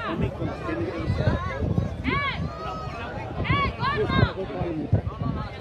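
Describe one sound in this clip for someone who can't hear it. A crowd of men and women chatter loudly close by, outdoors.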